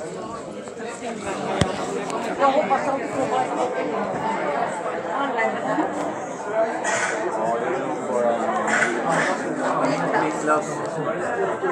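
A crowd of adults chatters in a large, echoing hall.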